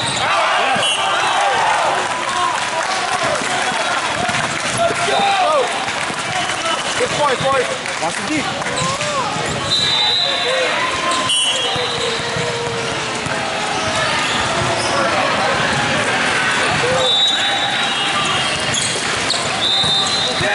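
Many voices chatter and shout throughout a large echoing hall.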